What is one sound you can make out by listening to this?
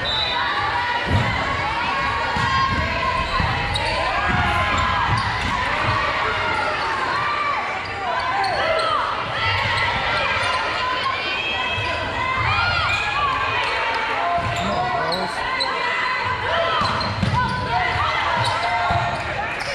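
Sneakers squeak sharply on a hard floor in a large echoing gym.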